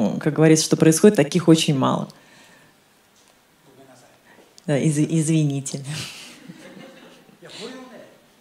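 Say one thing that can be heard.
A woman speaks into a microphone in a large echoing hall, heard through loudspeakers.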